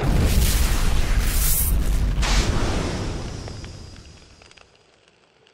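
A fiery whoosh swells and slowly fades away.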